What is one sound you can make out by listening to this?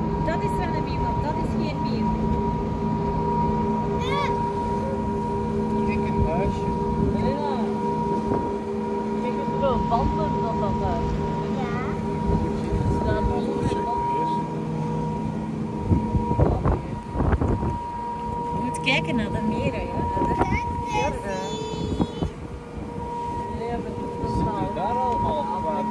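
A boat engine hums steadily.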